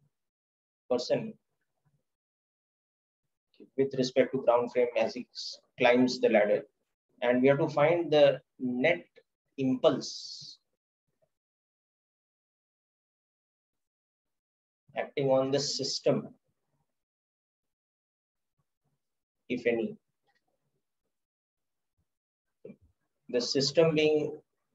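A man speaks calmly into a close microphone, explaining with pauses.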